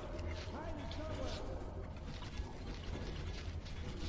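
A revolver is drawn with a short metallic click.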